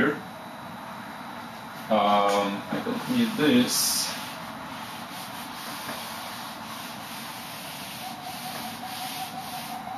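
A felt eraser rubs across a whiteboard.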